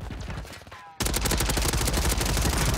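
A rifle fires in a rapid, loud burst.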